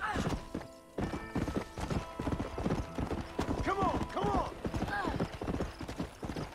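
Horse hooves clop steadily on a dirt trail.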